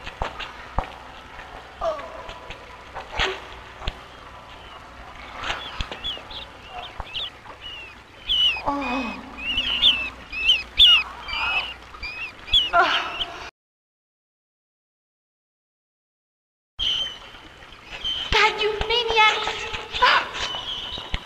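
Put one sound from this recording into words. A young woman sobs and whimpers close by.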